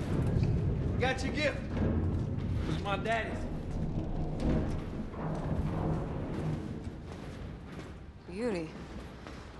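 A young woman speaks tensely nearby.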